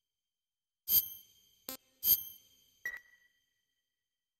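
Short electronic menu chimes ring out a few times.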